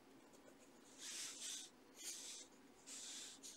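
A pencil scratches across paper in short strokes.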